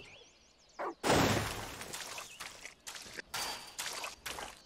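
Dry leaves rustle and scatter as a dog leaps into a leaf pile.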